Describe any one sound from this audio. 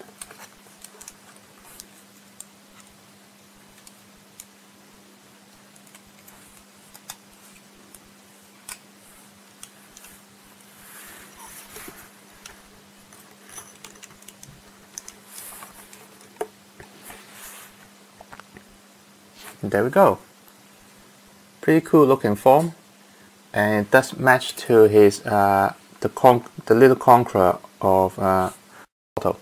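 Plastic parts click and tap softly as a toy figure is handled up close.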